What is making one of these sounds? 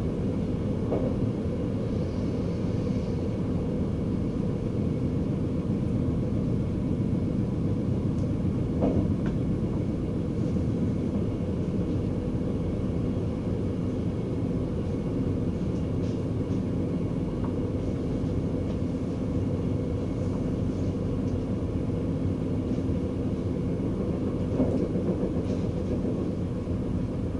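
A train rumbles steadily along the tracks, heard from inside the cab.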